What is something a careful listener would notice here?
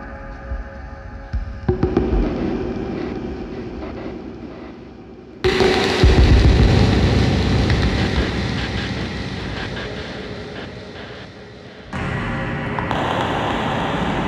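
Wires and springs scrape and twang under a player's hands.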